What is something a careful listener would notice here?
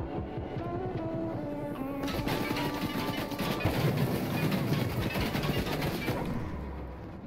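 A car engine hums as a car drives over rough ground.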